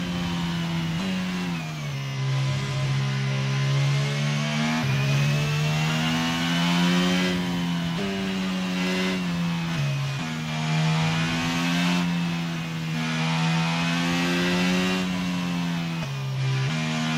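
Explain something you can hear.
A Formula 1 racing car engine in a video game screams at high revs.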